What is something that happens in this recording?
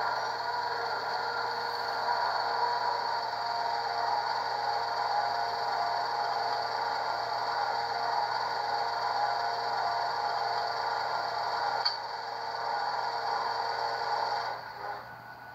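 A model railcar's engine hums steadily, then cuts out.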